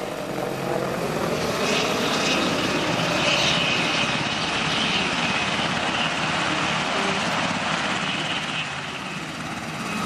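A helicopter flies overhead with a heavy rotor roar.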